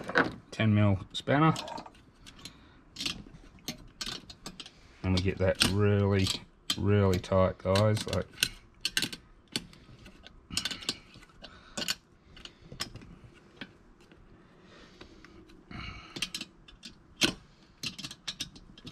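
Small metal parts click and tap against each other.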